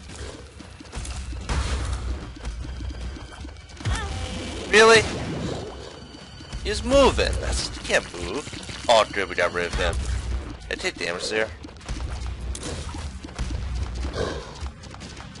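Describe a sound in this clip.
A video game character fires rapid, wet popping shots.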